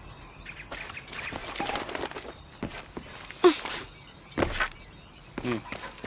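Footsteps thud on wooden logs.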